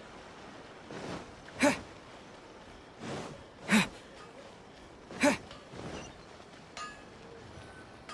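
Footsteps run over stone paving.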